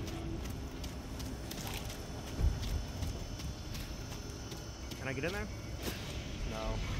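Footsteps crunch on gravel and dirt.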